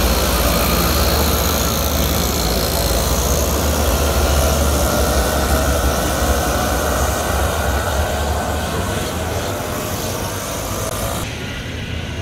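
Kart engines buzz and whine loudly as karts race past nearby.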